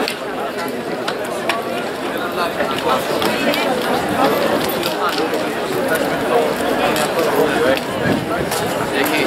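A crowd chatters at a distance outdoors.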